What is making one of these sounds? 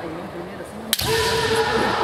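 A bamboo sword cracks sharply against armour.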